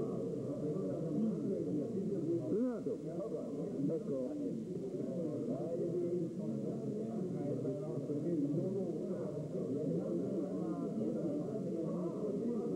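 Several men talk over one another close by.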